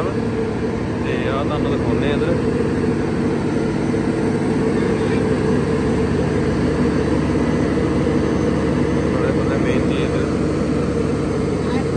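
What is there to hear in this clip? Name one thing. Water rushes steadily through a hose.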